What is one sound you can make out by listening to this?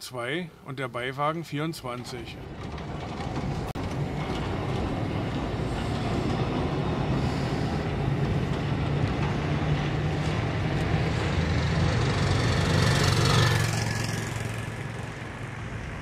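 A tram rumbles and rattles past along rails.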